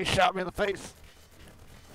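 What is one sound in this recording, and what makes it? A man shouts loudly into a microphone.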